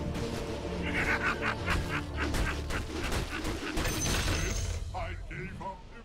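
Game combat sounds clash and crackle loudly.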